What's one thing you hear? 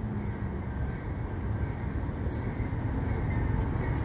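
A train rumbles far off and slowly draws closer.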